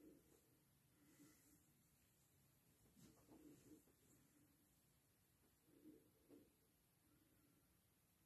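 A middle-aged woman speaks quietly and calmly, close by.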